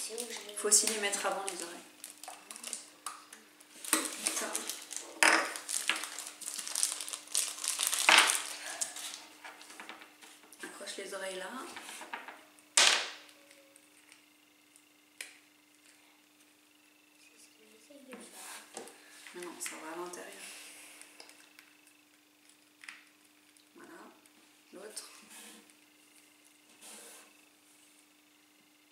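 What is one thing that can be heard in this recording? Plastic crinkles and rustles in hands.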